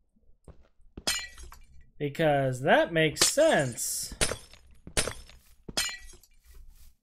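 Blocks break with short crunching knocks.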